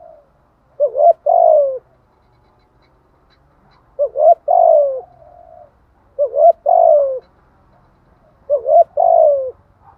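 A dove coos close by in soft repeated phrases.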